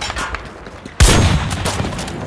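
A rifle fires a single loud, booming shot with a short echo.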